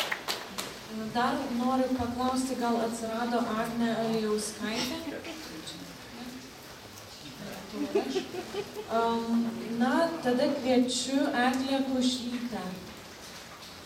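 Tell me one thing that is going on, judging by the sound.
A young woman reads aloud in a slow, drawn-out voice through a microphone.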